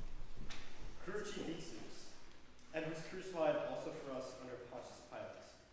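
A young man speaks through a microphone in a large echoing hall.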